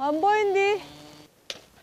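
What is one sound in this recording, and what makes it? An elderly woman calls out loudly close by.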